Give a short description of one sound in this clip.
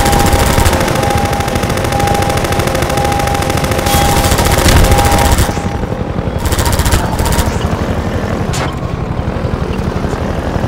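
A vehicle's engine rumbles steadily.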